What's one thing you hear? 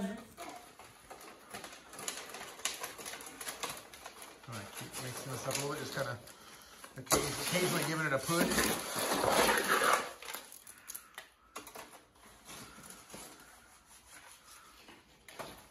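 A shovel scrapes and drops wet concrete into a metal tray.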